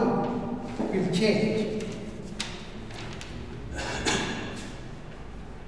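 A man speaks calmly, like a teacher explaining.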